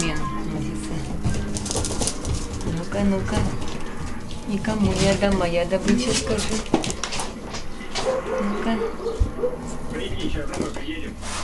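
Puppies scamper and scrabble across a floor.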